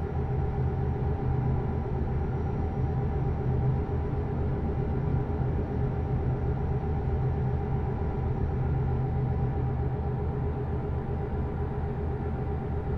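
Tyres roll steadily on a road.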